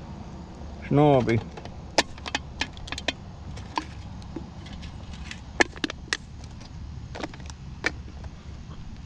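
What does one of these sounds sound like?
Small plastic parts click and snap under a hand.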